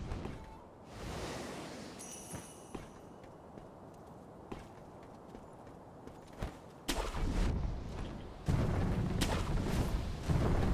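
A grappling rope whooshes through the air.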